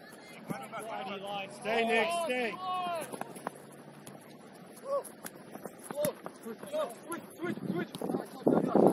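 Young male players shout to each other across an open field.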